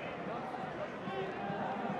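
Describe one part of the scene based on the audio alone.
A football is struck hard with a thud.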